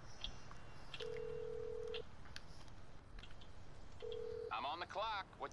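A phone's ringing tone sounds through the earpiece in short bursts.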